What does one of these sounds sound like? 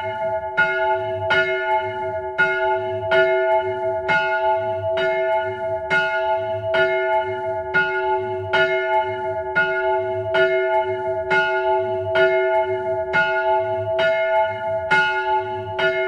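A large bell swings and rings loudly and steadily up close, each strike ringing on.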